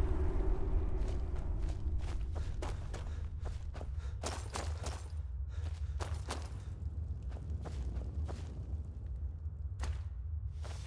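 Footsteps crunch on gravel and rock.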